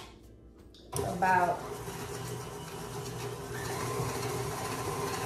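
A stand mixer whirs steadily.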